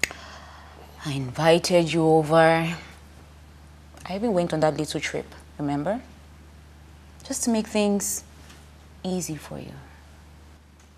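A young woman speaks tearfully and pleads.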